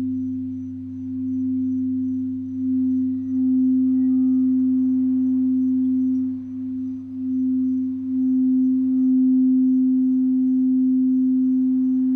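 A crystal singing bowl rings with a steady, pure hum that swells and dips as it is played.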